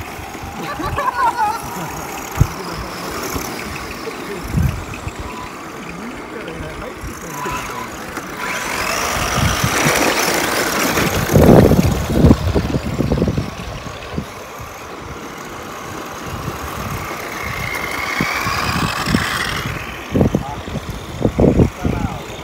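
Small electric motors whine as remote control cars race around a dirt track.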